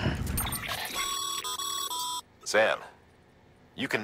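Electronic menu blips chirp.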